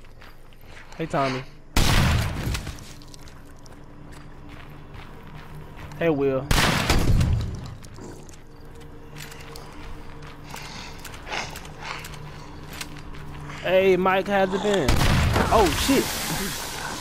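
A zombie groans and snarls close by.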